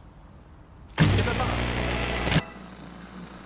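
A loud burst of static hiss crackles briefly.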